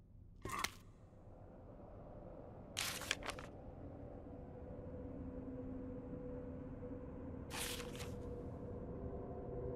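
A sheet of paper rustles as a page turns.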